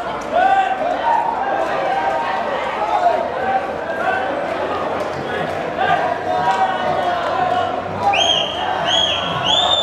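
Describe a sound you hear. A man shouts instructions from the sideline.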